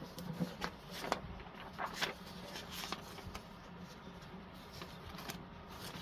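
Sheets of paper rustle and flap as they are handled.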